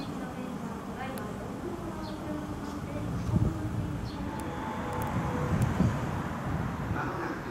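A distant train rumbles along the tracks, heard outdoors.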